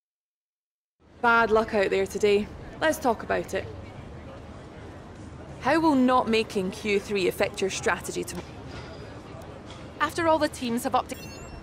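A young woman asks questions into a microphone with animation.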